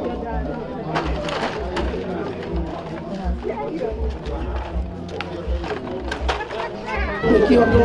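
Women talk with animation nearby.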